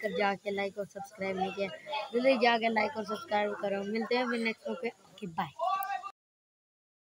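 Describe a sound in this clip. A boy talks with animation close to the microphone.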